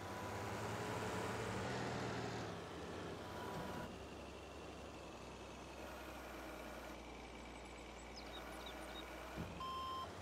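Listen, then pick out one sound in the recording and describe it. A loader's diesel engine rumbles and whines as it drives.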